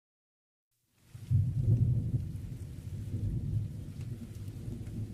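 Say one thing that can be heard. Rain falls steadily and drips from a roof's edge.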